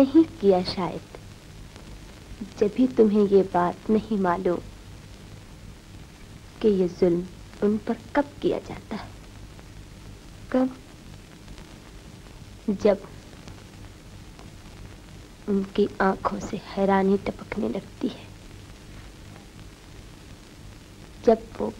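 A young woman speaks softly and with feeling, close by.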